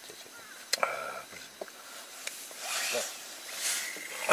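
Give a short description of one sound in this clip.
Fabric rustles and flaps as it is shaken and handled.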